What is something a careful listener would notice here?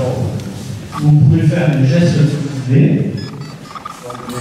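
A group of people speak an oath together in unison.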